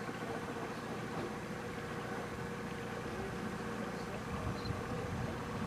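Water laps gently against the side of a small boat.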